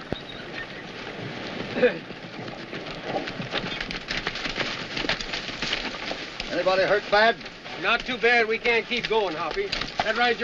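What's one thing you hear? A wooden wagon rattles along.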